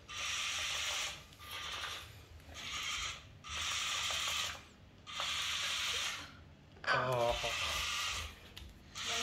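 A small toy motor whirs in short bursts as a toy robot drives across a hard floor.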